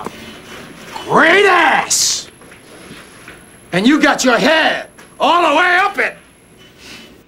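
A man screams and shouts in shock.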